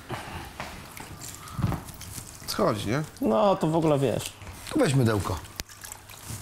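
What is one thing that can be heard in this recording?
Water sloshes in a bowl as cloth is wrung and rubbed.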